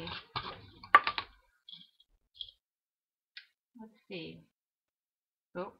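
Paper pieces are set down on a table with light taps and rustles.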